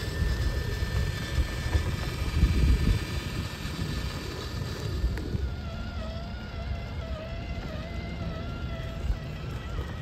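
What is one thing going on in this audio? Plastic tyres crunch over gravel and rubble.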